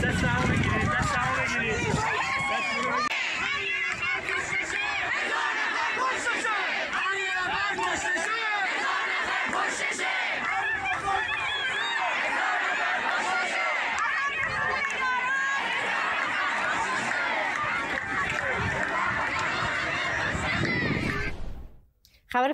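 A large crowd of men and women chants and shouts outdoors.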